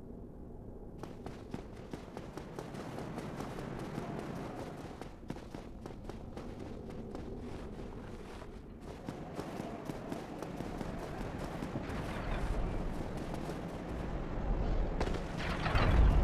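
Armoured footsteps clank quickly on stone.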